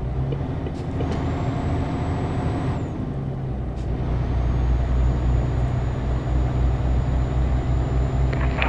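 A truck engine hums steadily while driving on a highway.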